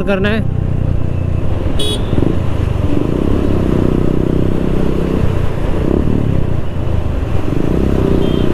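Wind and traffic rush past outdoors.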